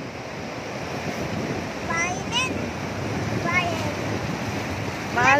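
Waves break and wash up onto a shore with a steady rush.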